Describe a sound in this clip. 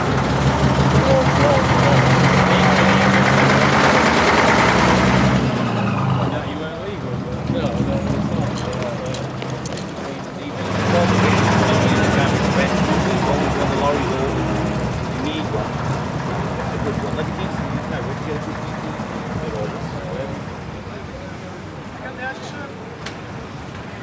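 A heavy diesel bus engine rumbles close by.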